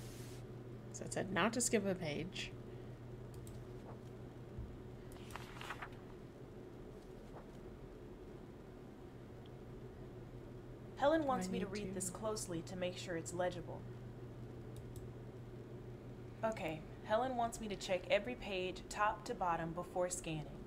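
A young woman talks into a microphone in short bursts, calmly and close.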